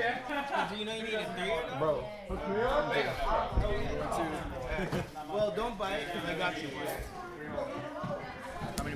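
Young men talk with each other nearby.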